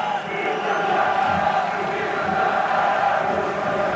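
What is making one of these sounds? A football is struck hard with a thump.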